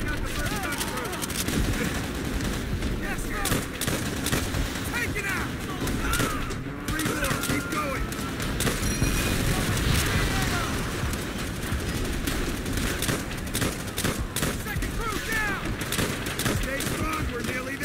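Rifle shots crack rapidly and repeatedly.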